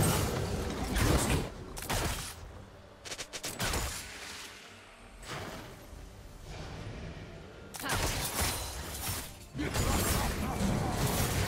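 Game spells and attacks crackle and whoosh in a busy fight.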